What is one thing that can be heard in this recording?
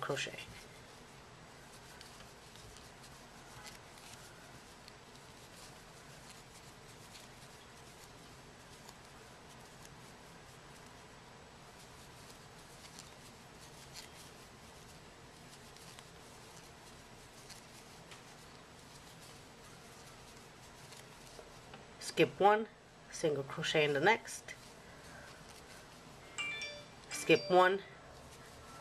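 A crochet hook softly rasps through yarn.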